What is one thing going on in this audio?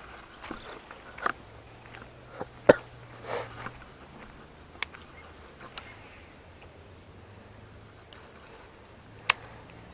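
A fishing reel clicks as the line is wound in.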